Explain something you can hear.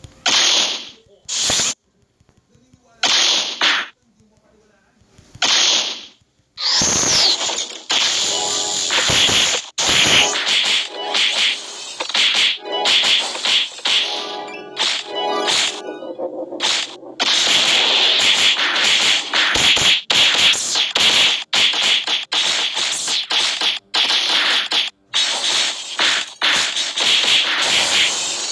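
Game battle effects burst and clash in quick bursts.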